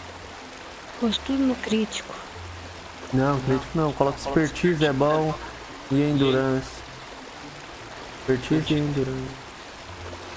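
A man talks calmly and close to a microphone, in short bursts.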